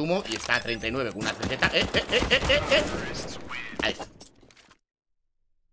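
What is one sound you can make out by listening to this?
A young man talks excitedly through a headset microphone.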